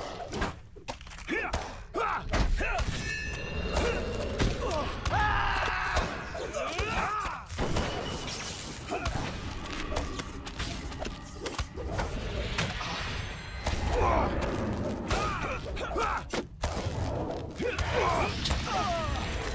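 Magic spells burst and whoosh.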